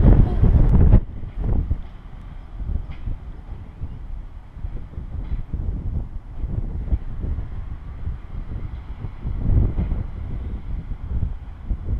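Wind buffets outdoors in low gusts.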